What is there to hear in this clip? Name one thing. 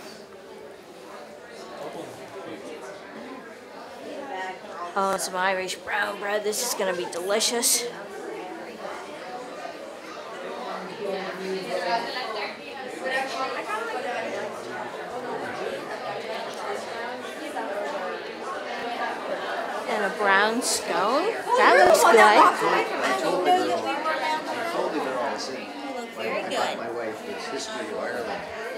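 Several people chat in the background of a room.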